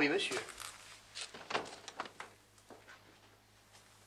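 A door shuts.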